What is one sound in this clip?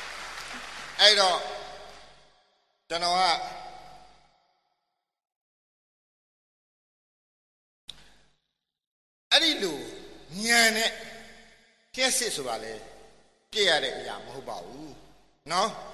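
A man speaks with animation, close to a microphone, with short pauses.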